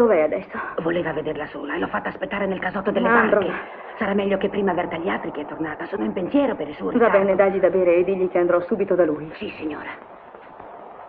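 A woman speaks through an old, narrow-sounding film soundtrack.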